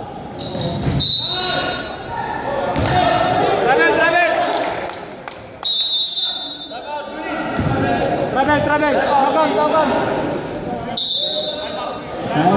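A referee's whistle blows sharply a few times.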